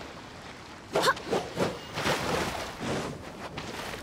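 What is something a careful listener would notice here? Water splashes as a figure leaps from it.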